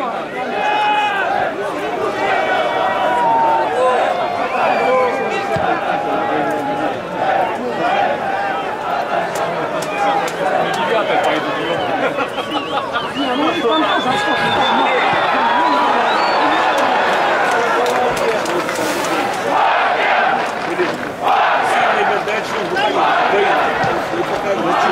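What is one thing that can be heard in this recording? A stadium crowd chants and sings in the open air.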